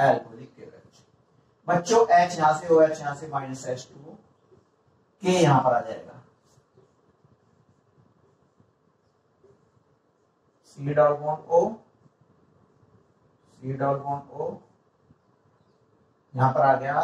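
A young man speaks calmly in short bursts, as if explaining.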